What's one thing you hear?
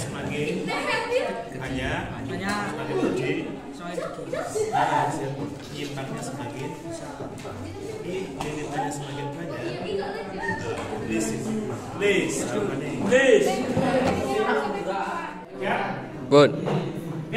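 Several teenage boys talk with animation close by.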